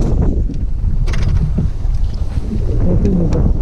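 A fishing reel clicks as a lure is handled.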